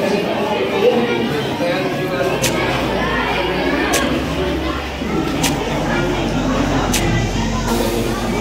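A crowd of young men and boys chatters throughout a room with a slight echo.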